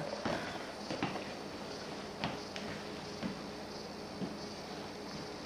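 A ball bumps and rolls across a wooden floor.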